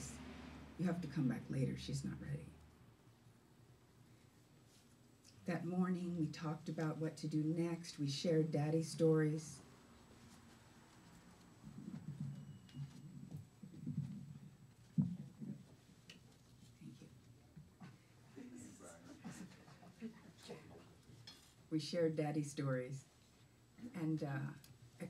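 An older woman speaks expressively into a microphone.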